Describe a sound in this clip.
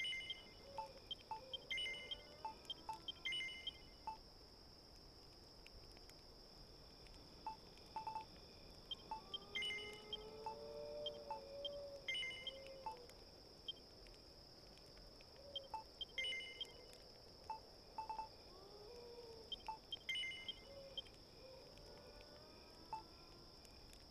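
Short electronic menu blips chirp as a cursor moves through a list.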